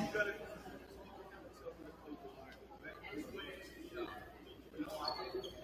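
Young people talk and chatter in a large echoing gym.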